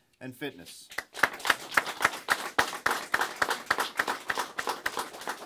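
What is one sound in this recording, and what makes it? A small group of people applauds.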